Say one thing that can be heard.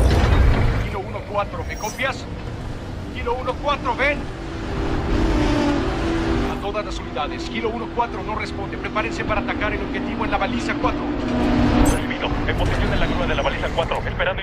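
A crane's motor hums as it swings a heavy metal container.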